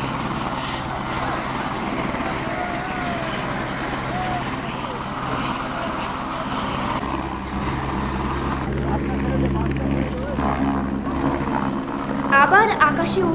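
A helicopter engine whines and its rotor thumps steadily close by, outdoors.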